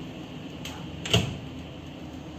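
An oven door opens with a clunk.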